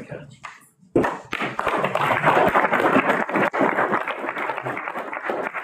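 A crowd applauds in a large room.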